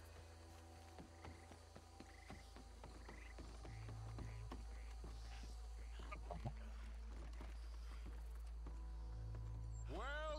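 Footsteps thud on a wooden boardwalk.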